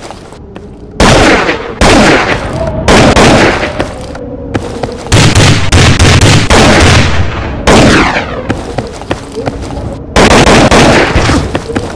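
A rifle fires single loud shots that ring out.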